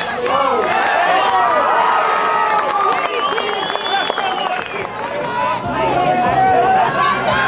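A crowd of men and women cheers and shouts loudly outdoors.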